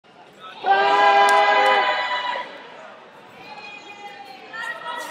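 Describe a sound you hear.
A man shouts loudly and with long drawn-out calls in a large echoing hall.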